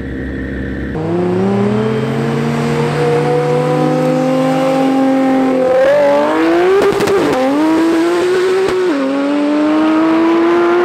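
A sports car accelerates hard, its engine roaring and rising through the gears.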